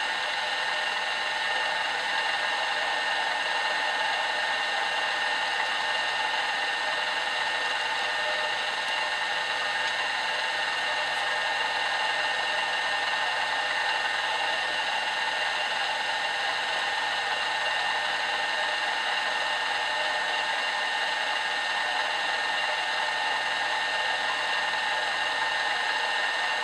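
A milling machine cutter whirs steadily as it cuts into brass.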